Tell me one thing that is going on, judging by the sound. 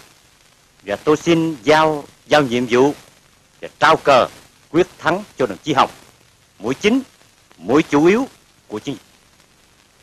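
A man speaks calmly and earnestly, close by.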